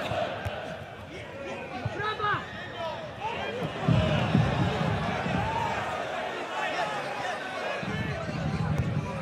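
Players shout to each other across an open outdoor pitch.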